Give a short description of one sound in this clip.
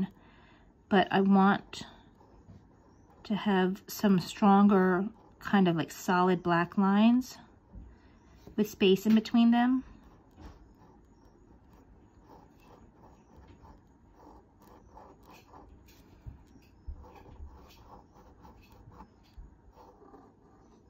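A fine-tipped pen scratches softly on paper in short strokes.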